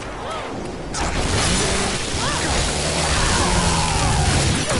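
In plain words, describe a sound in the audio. A blade slashes and tears into flesh with a wet splatter.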